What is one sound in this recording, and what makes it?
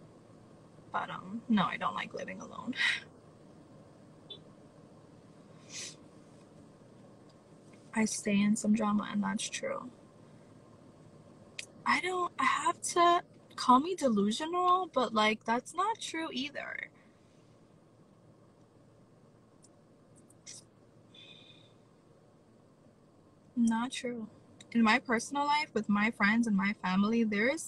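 A young woman talks casually and close up, in bursts with pauses.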